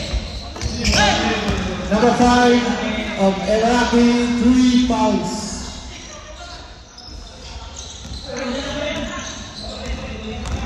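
A man shouts loudly in a large echoing gym.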